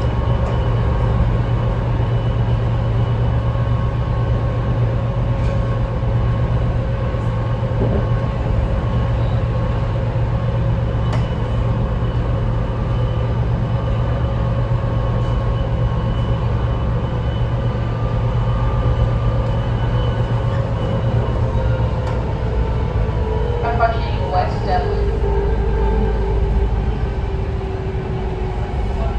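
Train wheels squeal and whine on the rails.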